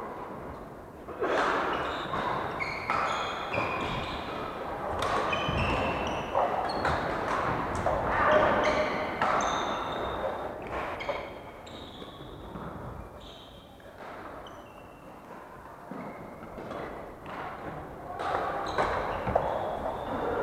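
Shuttlecocks are struck with rackets in a large echoing hall.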